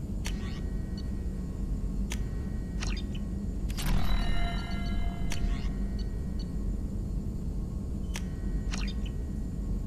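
Soft electronic menu beeps and clicks sound now and then.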